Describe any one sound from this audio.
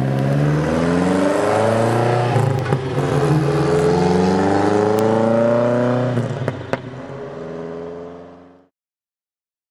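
A car engine roars loudly as the car accelerates away, its pitch climbing through the gears, then fades into the distance.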